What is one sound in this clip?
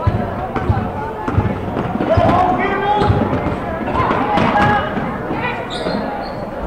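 Spectators in the stands shout and cheer.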